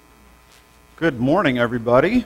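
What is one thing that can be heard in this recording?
A man speaks loudly through a microphone in a large echoing room.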